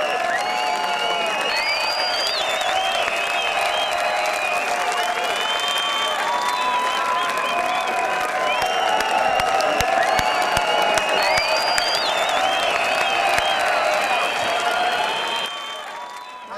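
Electronic dance music plays loudly outdoors.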